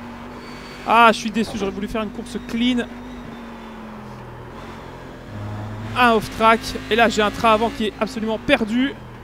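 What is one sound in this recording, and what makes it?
Tyres squeal sharply in short bursts through corners.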